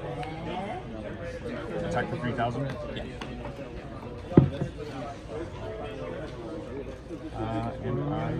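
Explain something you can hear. Young men talk casually across a table nearby.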